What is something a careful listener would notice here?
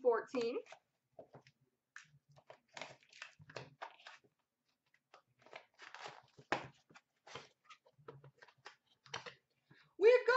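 Cardboard boxes tap and scrape as hands handle them.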